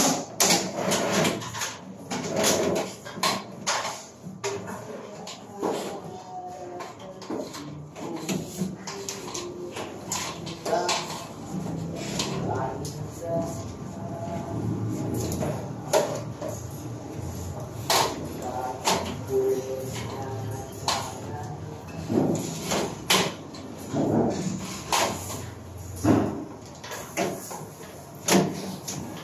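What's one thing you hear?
Cables rustle and knock against a metal frame as they are pulled.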